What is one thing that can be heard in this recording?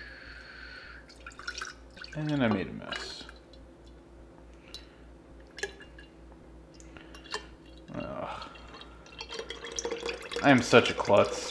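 Liquid pours in a thick stream into a glass jar.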